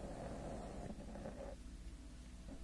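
A young woman whispers softly close to a microphone.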